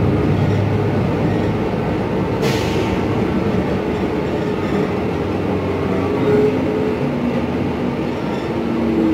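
A bus engine hums and rumbles steadily while the bus drives and turns.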